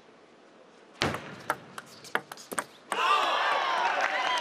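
A ball clicks back and forth across a table tennis table.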